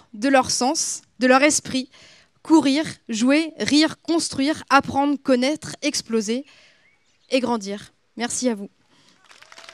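A woman speaks into a microphone, heard over loudspeakers outdoors.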